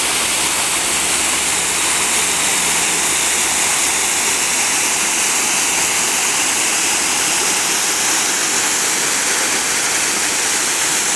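A waterfall splashes steadily into a pool below.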